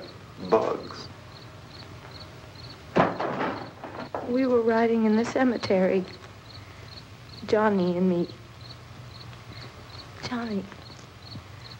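A young woman speaks softly and hesitantly, close by.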